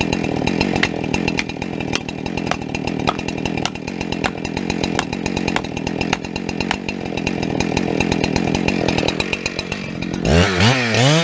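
A chainsaw engine idles nearby.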